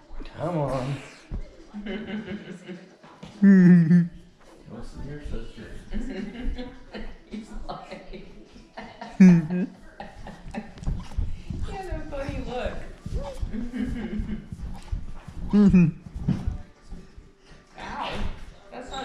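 A woman talks from across the room.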